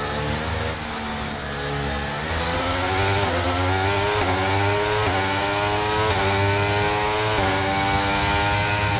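A racing car engine screams loudly, climbing in pitch and dipping briefly at each quick gear change.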